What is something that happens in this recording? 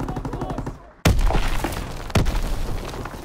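Gunshots boom loudly in quick bursts.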